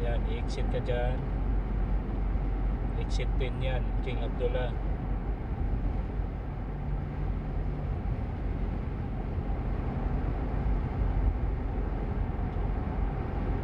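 Road noise and a car engine rumble steadily from inside a moving car.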